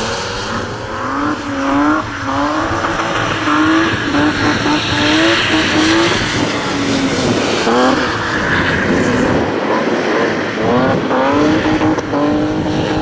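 A car engine revs hard, rising in pitch again and again through gear changes.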